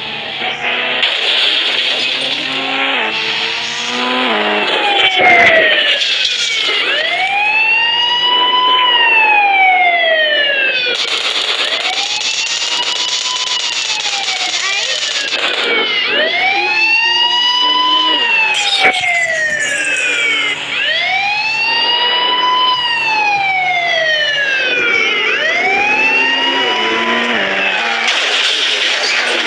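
A police siren wails, rising and falling over and over.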